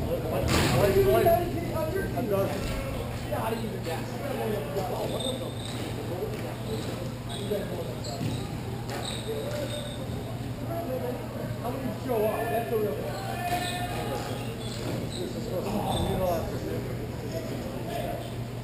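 Young male players call out to each other, echoing in a large hall.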